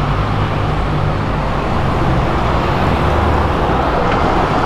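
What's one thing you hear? A sports car engine rumbles deeply.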